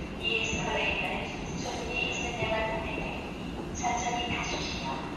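An escalator runs with a low mechanical rumble.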